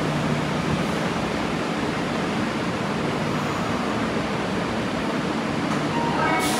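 A subway train rolls slowly into an echoing underground station with a steady rumble and whine.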